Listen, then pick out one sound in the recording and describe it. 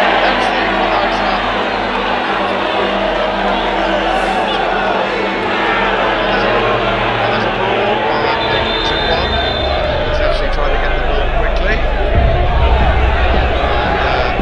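A stadium crowd cheers and chants loudly outdoors.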